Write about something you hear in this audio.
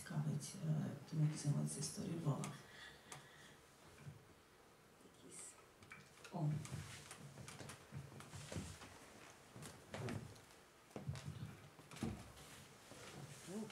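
A young woman speaks into a microphone, pausing often.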